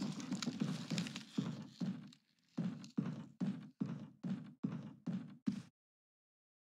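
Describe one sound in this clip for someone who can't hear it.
Footsteps thud steadily on wooden boards.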